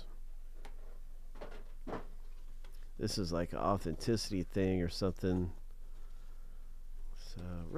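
Paper envelopes rustle and crinkle as they are handled.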